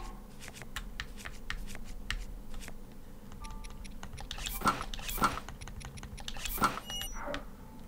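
Soft video game menu blips sound as items are selected.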